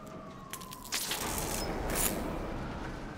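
Electrical sparks crackle and buzz in a sudden burst.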